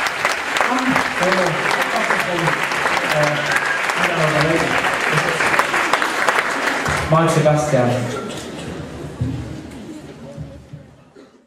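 A large big band plays a lively swing tune with brass and saxophones, heard in an echoing hall.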